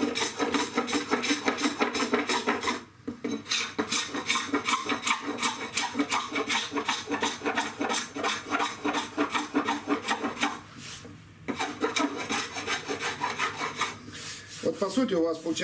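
A chisel scrapes rapidly at wood in quick, rasping strokes.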